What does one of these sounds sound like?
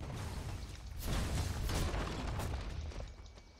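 Magic spells crackle and whoosh in a game battle.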